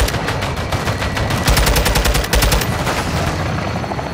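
A car explodes with a loud boom.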